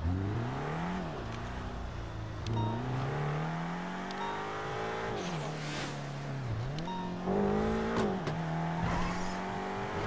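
A car engine revs up and down as the car accelerates and shifts gears.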